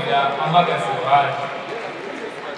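A large choir sings together in a big echoing hall, and the singing fades away.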